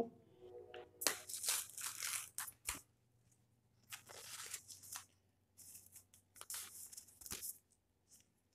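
A paper packet crinkles and tears open.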